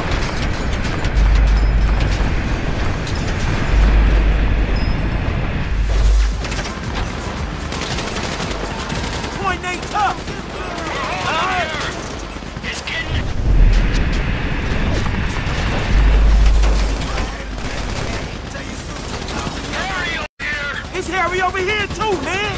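A heavy diesel engine rumbles and roars as a bulldozer drives along.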